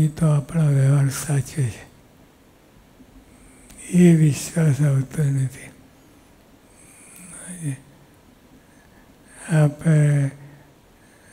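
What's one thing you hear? An elderly man reads aloud slowly and calmly into a microphone, with pauses.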